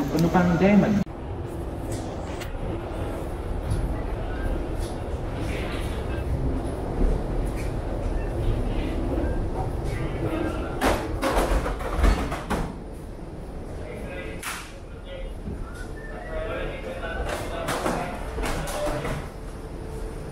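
Footsteps tap on a hollow walkway floor.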